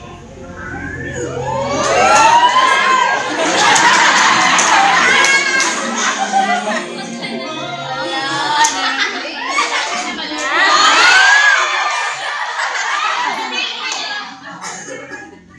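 A young woman talks excitedly into a microphone, heard through loudspeakers.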